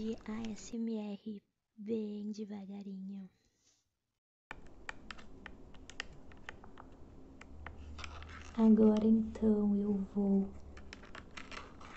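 Plastic remote buttons click under a finger.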